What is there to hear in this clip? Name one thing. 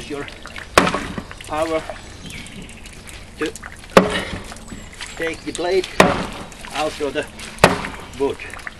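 An axe splits wood with sharp knocks.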